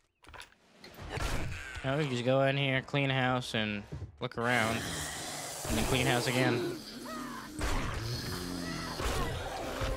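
A zombie snarls and groans.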